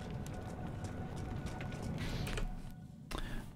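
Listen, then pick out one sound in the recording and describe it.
Torch flames crackle softly.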